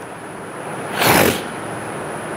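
An elderly man sniffs loudly close to a microphone.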